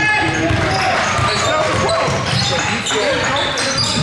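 A basketball bounces on the court with hollow thuds.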